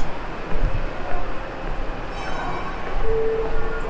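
Footsteps tap on a hard floor in an echoing corridor.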